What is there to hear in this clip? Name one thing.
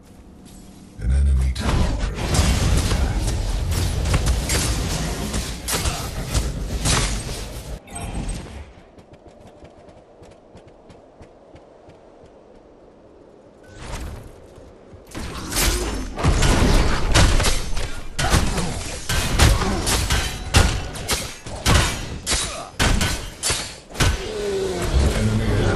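Magical blasts and explosions crackle and boom in a fierce fight.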